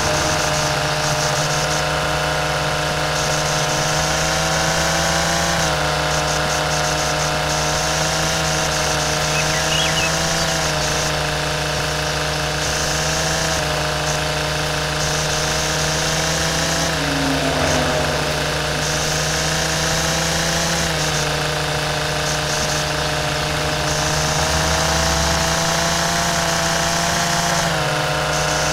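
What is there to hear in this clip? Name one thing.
A string trimmer's line cuts through grass.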